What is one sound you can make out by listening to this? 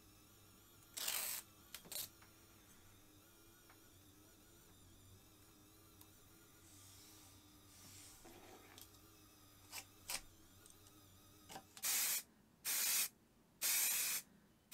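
Tape rips loudly off a roll in short bursts.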